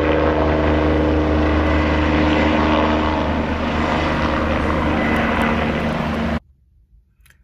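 A helicopter's rotor thuds loudly overhead.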